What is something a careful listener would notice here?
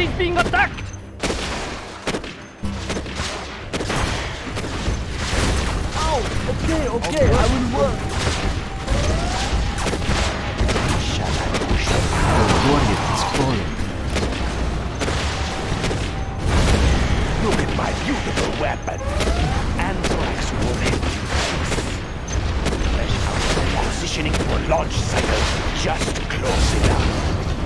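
Gunfire rattles in bursts.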